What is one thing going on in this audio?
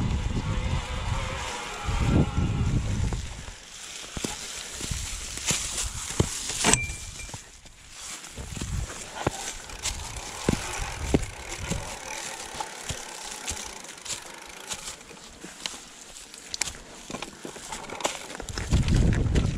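A bicycle rattles and clunks over bumps and stones.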